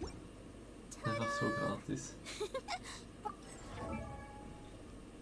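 A bright magical chime jingle plays with sparkling notes.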